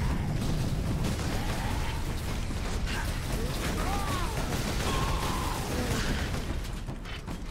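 Guns fire in rapid, rattling bursts amid a noisy battle.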